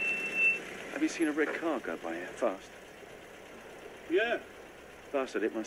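A woman speaks kindly from inside a van.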